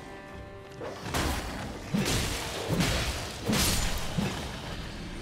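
Heavy weapon blows strike and slash in quick succession.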